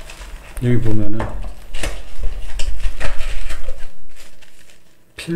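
Paper and cardboard rustle and crinkle as they are handled close by.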